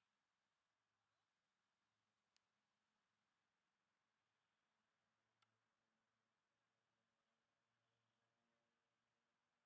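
A formation of propeller planes drones faintly overhead in the distance.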